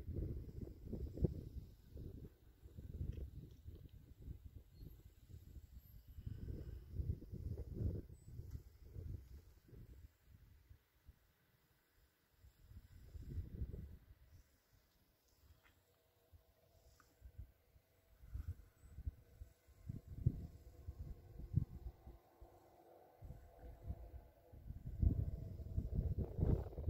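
Wind gusts across an open field and buffets the microphone.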